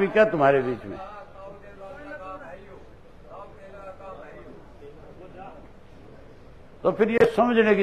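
People in a crowd murmur quietly in the background.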